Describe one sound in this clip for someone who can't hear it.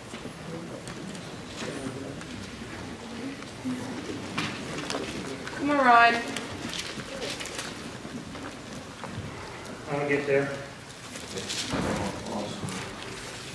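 A man speaks calmly and with emphasis through a microphone.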